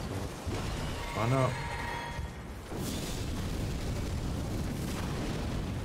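A magical blast bursts with a loud whoosh.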